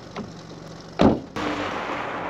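A car door shuts.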